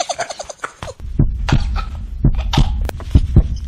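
A man thumps his chest.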